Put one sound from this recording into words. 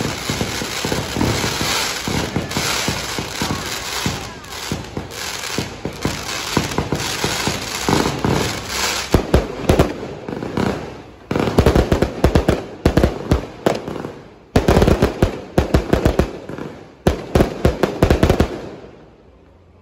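Fireworks crackle and bang rapidly close by.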